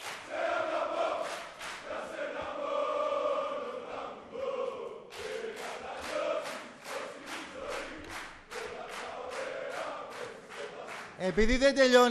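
A large crowd chants loudly in unison in an echoing hall.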